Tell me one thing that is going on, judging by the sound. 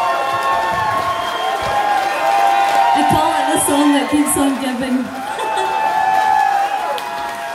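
A woman sings into a microphone over a live rock band.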